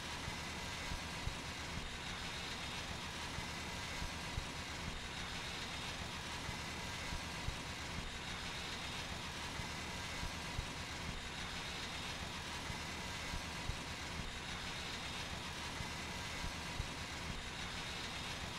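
A high-pressure water jet hisses steadily.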